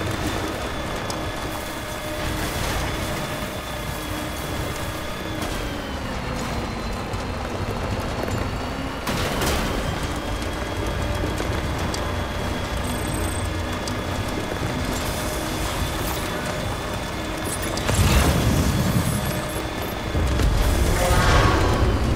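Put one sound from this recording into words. An off-road truck engine hums steadily as it drives over rough ground.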